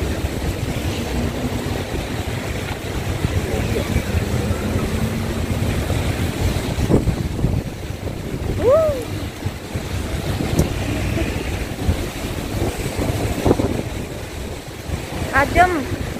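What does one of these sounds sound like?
Car tyres hiss on a wet road as city traffic passes.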